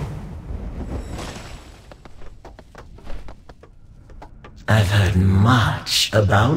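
Game spell effects crackle and swoosh in quick bursts.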